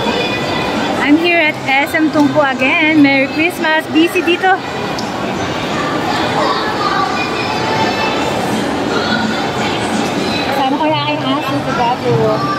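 A young woman speaks close to the microphone in a lively, sing-song voice.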